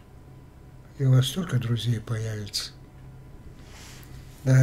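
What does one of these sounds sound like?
An older man speaks with animation, close to a microphone.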